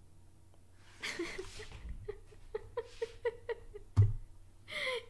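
A young woman laughs loudly and repeatedly close to a microphone.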